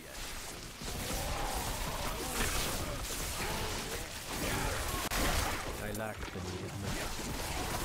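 Electric spells crackle and zap in bursts.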